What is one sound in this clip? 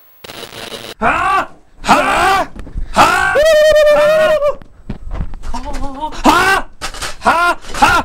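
Young men sing loudly and with animation close by.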